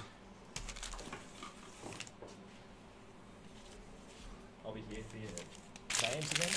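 Foil card packs rustle as they are handled.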